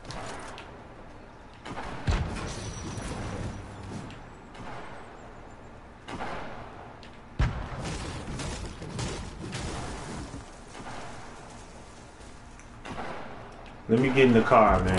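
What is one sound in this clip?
Footsteps run quickly over grass and pavement.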